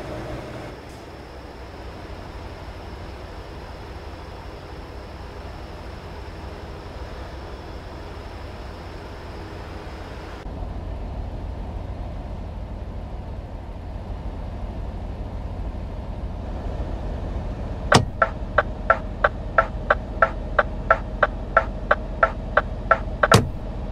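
Tyres roll over the road with a steady rush.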